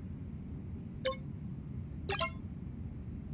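Short electronic blips sound.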